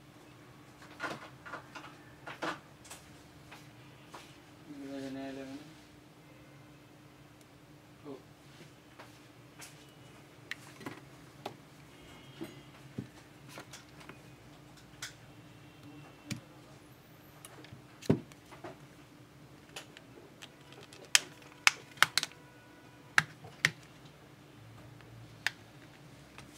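Small plastic parts click and tap as a phone is handled.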